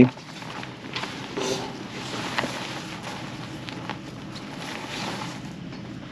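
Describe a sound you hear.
Fabric rustles as a cloth sheet is shaken out.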